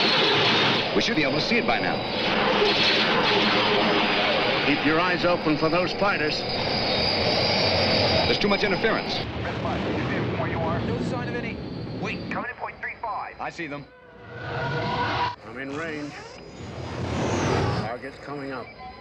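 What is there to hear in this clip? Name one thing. A man speaks urgently over a helmet radio.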